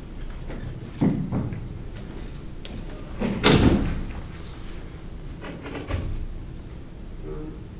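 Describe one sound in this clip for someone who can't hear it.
Knocks and thumps sound as equipment is handled on a table.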